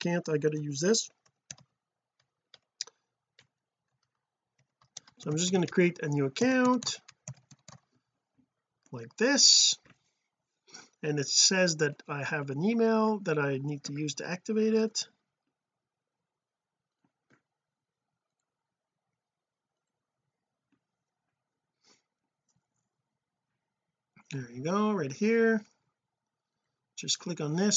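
A man talks calmly and close to a microphone, with pauses.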